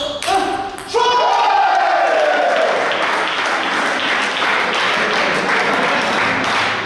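Spectators clap and cheer.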